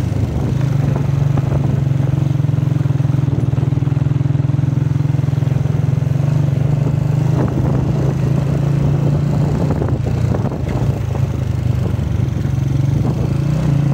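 Tyres crunch and rattle over a bumpy gravel track.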